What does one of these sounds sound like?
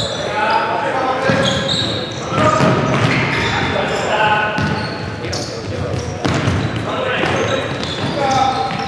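Young men shout to each other in an echoing hall.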